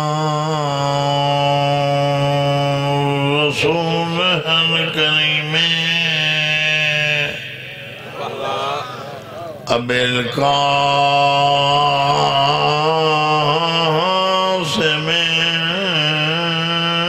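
A man chants a mournful recitation with long held notes through a microphone and loudspeaker.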